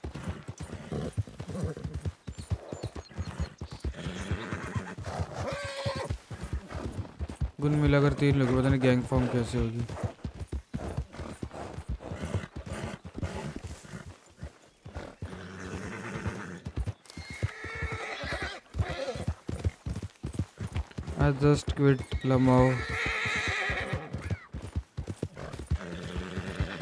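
A horse gallops, its hooves thudding on a dirt trail.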